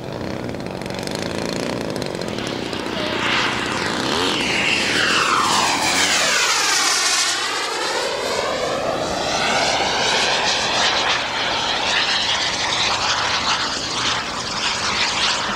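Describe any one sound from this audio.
A jet engine roars loudly as it flies past overhead, its pitch sweeping down.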